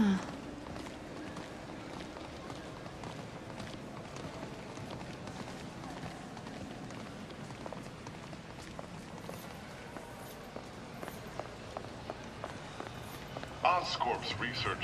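Footsteps click on a hard floor in a large echoing hall.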